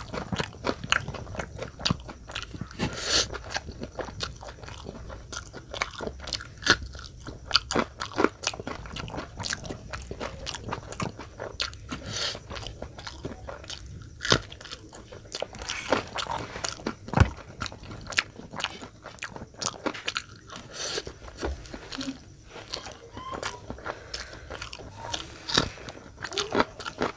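A man chews and slurps noodles loudly up close.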